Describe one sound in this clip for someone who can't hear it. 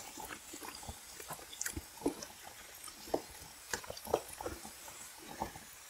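Chopsticks click and scrape against a metal bowl.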